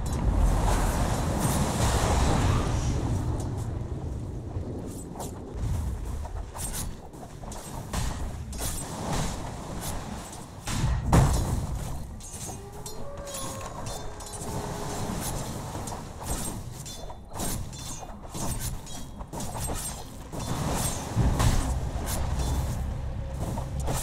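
Game spell effects crackle and burst during a battle.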